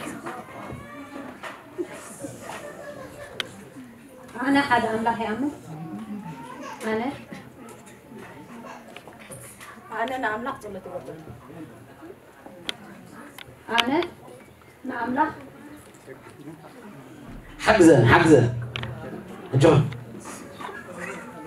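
A woman speaks in reply, close by.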